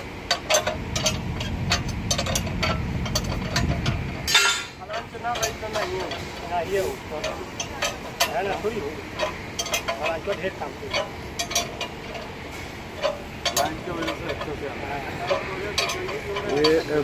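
Metal parts clank as workers handle them.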